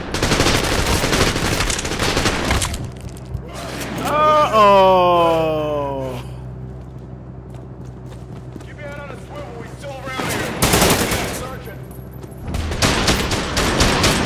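A rifle fires rapid bursts of gunfire.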